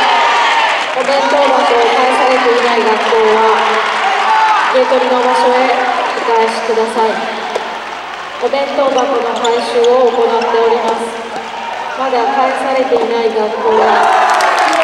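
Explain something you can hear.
A crowd of young spectators chants loudly in unison in a large echoing hall.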